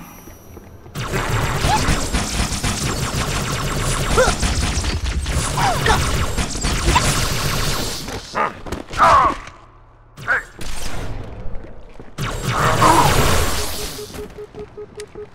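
Dual plasma pistols fire in rapid bursts with crackling impacts.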